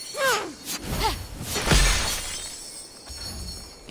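Magic bolts whoosh through the air.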